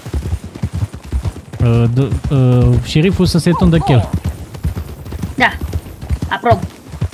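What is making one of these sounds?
Horses gallop, hooves thudding quickly on soft ground.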